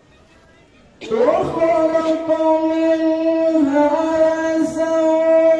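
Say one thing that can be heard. A young man chants slowly and melodiously into a microphone.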